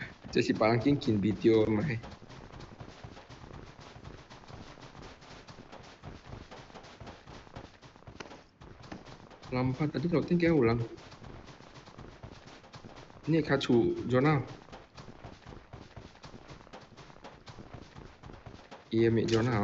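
Footsteps crunch quickly through snow.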